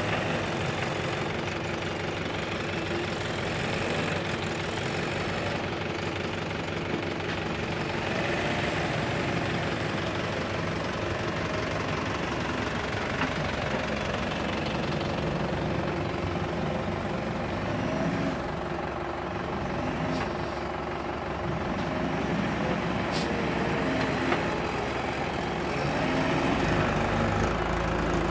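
A backhoe loader's diesel engine rumbles and revs steadily nearby.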